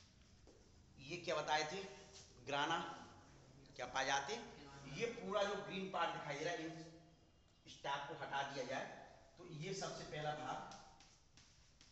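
A man speaks calmly and clearly, close by, as if explaining.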